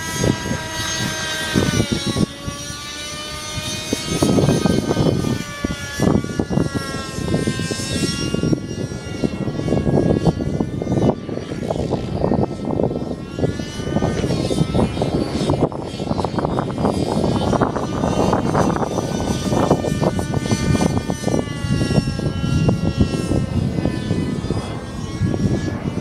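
A nitro-engined radio-controlled model helicopter whines overhead, its pitch rising and falling.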